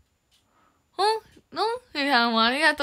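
A young woman speaks brightly and with animation, close to the microphone.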